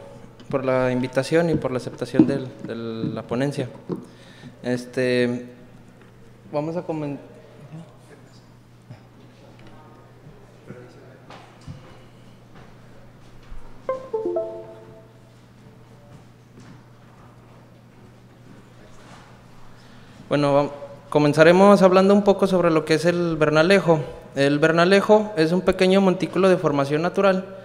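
A young man speaks calmly into a microphone over loudspeakers in an echoing hall.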